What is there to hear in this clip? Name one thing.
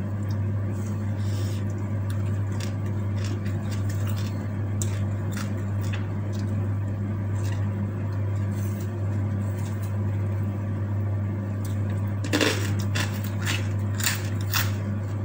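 A woman chews food noisily close to a microphone.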